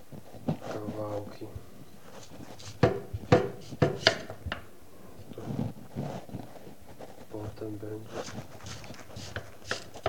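A vegetable peeler scrapes the skin off a sweet potato.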